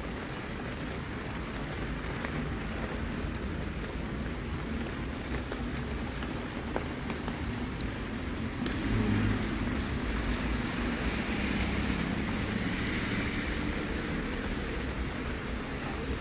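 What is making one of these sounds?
Footsteps splash lightly on wet pavement.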